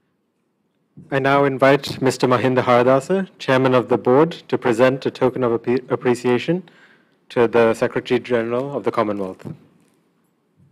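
A young man speaks calmly into a microphone, his voice carried through loudspeakers in a large room.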